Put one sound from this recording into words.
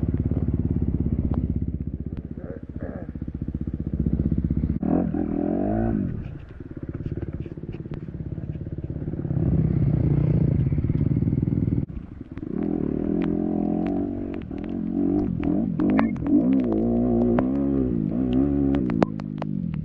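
A dirt bike engine revs hard, rising and falling through the gears.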